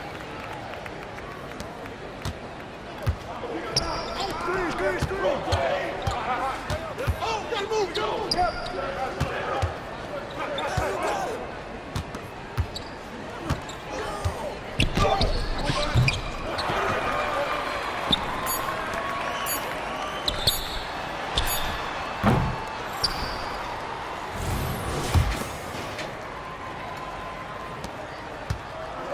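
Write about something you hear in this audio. A crowd murmurs in a large hall.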